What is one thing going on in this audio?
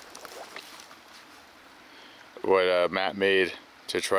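A shallow stream trickles softly over stones.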